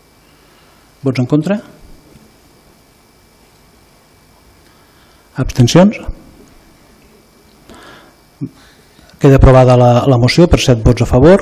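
A man speaks through a microphone in short bursts.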